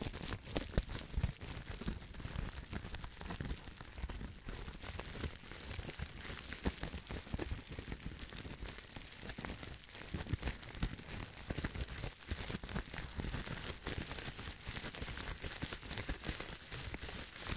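Bubble wrap bubbles pop with sharp snaps.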